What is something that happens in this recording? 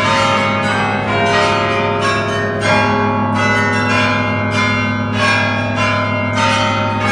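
Large bells ring out a slow melody, each note ringing on.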